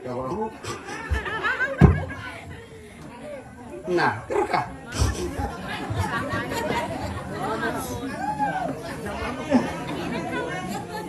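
A woman sings into a microphone with a lively voice.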